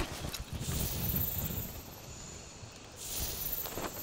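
Footsteps crunch over grass.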